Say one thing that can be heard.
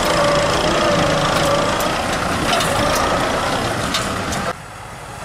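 A disc plough scrapes and churns through soil.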